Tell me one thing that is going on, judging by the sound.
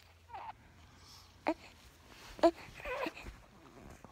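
A baby coos and squeals softly close by.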